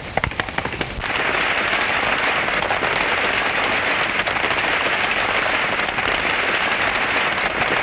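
A wagon rattles and rumbles along at speed.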